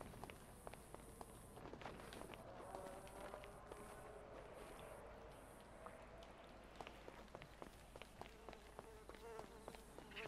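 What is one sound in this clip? Footsteps walk and run over hard ground.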